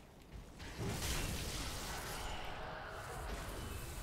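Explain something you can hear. A fiery blast bursts and roars.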